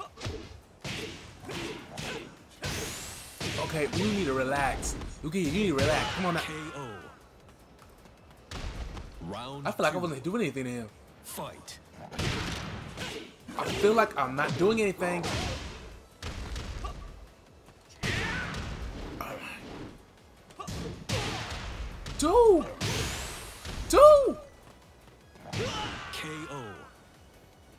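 A young man exclaims and talks with animation.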